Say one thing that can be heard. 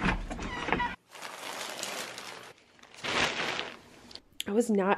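Plastic wrapping crinkles and rustles under a hand.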